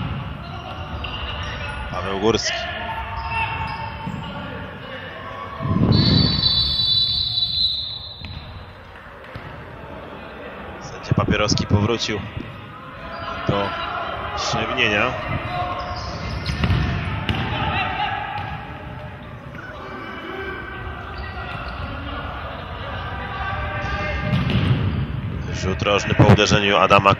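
Sneakers squeak on a hard court floor in an echoing hall.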